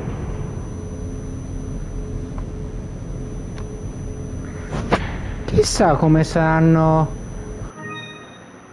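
A lift rumbles steadily as it descends.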